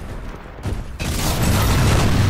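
Electricity crackles and buzzes loudly close by.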